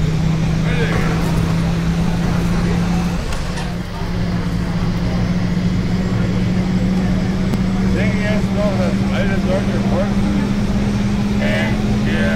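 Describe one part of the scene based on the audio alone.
Tyres roll along a road.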